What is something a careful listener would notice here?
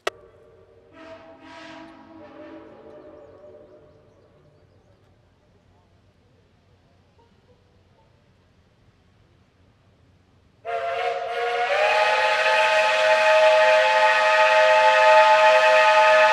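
A steam locomotive whistle blows in the distance, first briefly and then long and loud.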